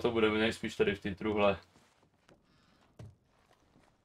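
A wooden chest lid thumps open.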